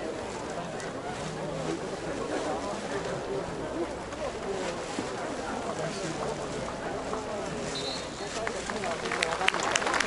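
A large stadium crowd murmurs and chatters steadily in the open air.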